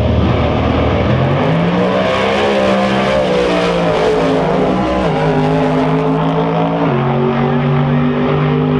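Race car engines roar as the cars launch and speed away.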